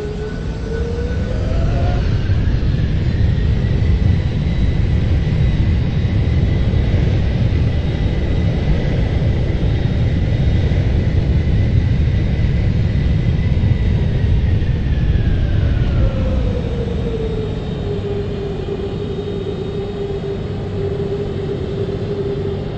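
Tyres rumble on a runway as an airliner rolls.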